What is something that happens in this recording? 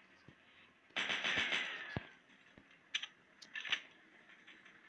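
A gun fires in short rapid bursts.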